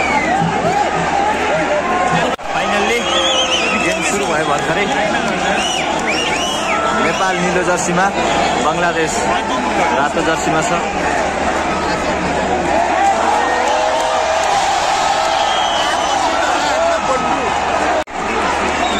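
A large crowd of spectators cheers, shouts and whistles loudly all around, outdoors in a big open stadium.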